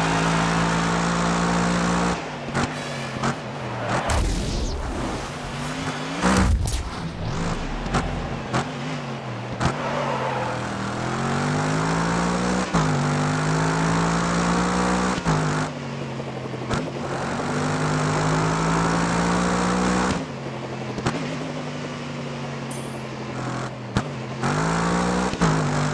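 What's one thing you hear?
A race car engine roars, revving up and dropping sharply with each gear change.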